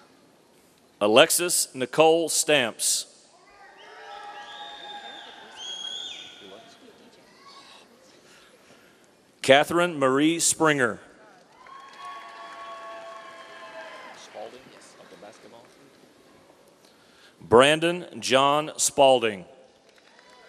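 A man reads out names loudly through a microphone in a large echoing hall.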